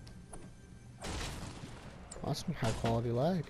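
A video game treasure chest opens with a shimmering chime.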